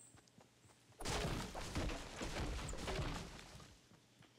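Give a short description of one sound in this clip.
A pickaxe thumps against a tree trunk.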